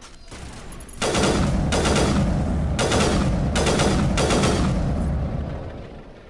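A rifle fires a loud, booming shot.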